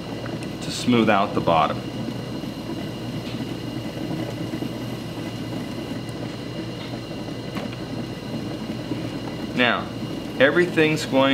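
A potter's wheel hums steadily as it spins.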